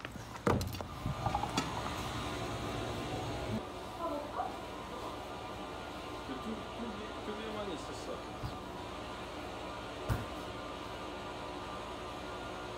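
A washing machine hums steadily.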